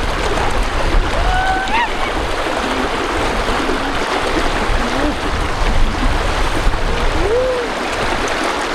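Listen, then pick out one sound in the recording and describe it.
A piglet squeals in short high cries.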